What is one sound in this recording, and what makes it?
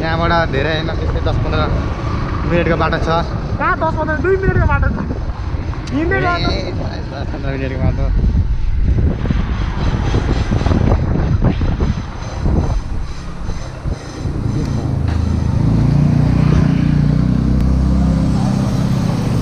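A motorbike engine hums steadily as it rides.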